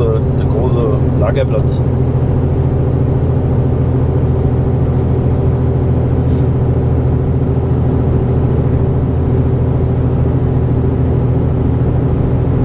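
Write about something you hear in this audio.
A truck engine hums with a steady low drone.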